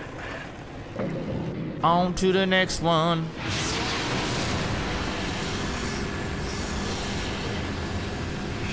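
A quad bike engine revs and roars.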